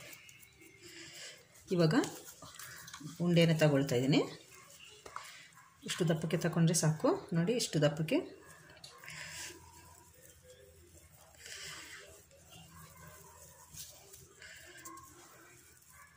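Hands knead soft dough with quiet squishing.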